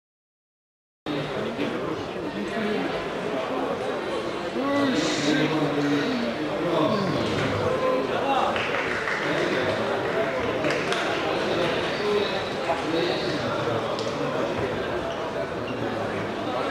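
A large crowd chatters and calls out in an echoing hall.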